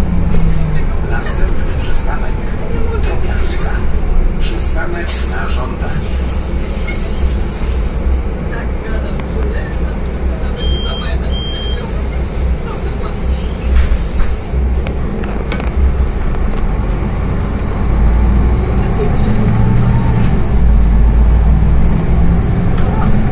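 A bus engine rumbles steadily, rising as the bus pulls away.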